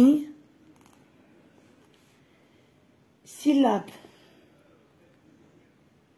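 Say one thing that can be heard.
A felt-tip pen draws circles on paper.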